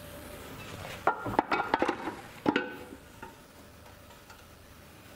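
A heavy metal cover scrapes and clunks as it is lifted off.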